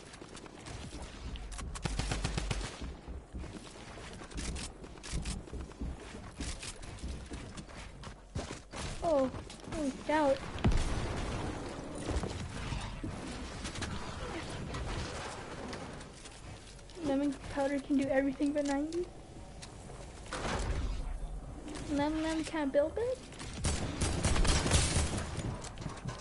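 Gunshots crack in quick bursts from a video game.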